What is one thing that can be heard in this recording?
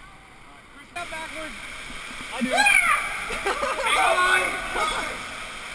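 Water rushes and splashes through a slide tube.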